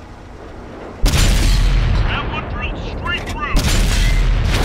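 A tank cannon fires with a loud, deep boom and a rumbling echo.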